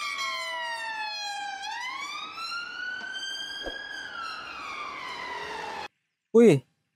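A police siren wails as a vehicle drives past.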